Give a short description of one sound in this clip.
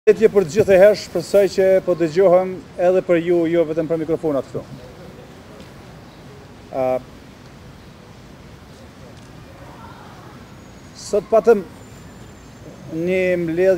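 A middle-aged man speaks calmly into microphones outdoors, with pauses.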